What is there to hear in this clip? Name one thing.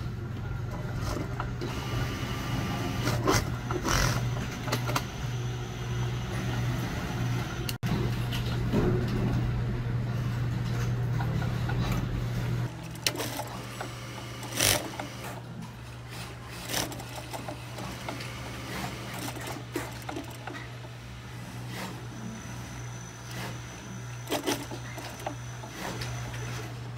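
A sewing machine hums and stitches steadily.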